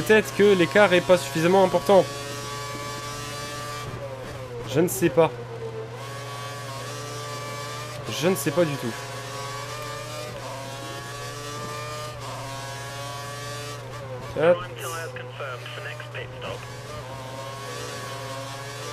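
A racing car engine roars steadily, its pitch shifting with gear changes.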